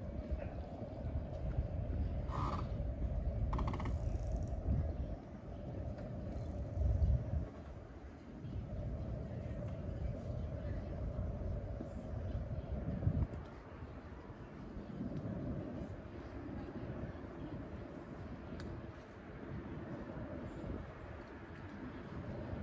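Wind blows outdoors in low gusts.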